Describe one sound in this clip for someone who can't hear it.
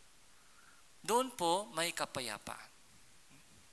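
A young man speaks briefly and clearly into a headset microphone.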